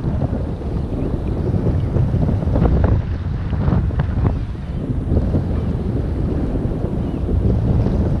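Wind buffets outdoors, rumbling steadily.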